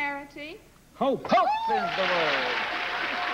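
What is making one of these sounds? A woman laughs loudly.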